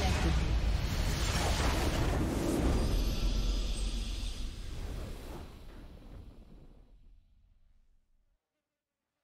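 A triumphant game fanfare swells and then fades to silence.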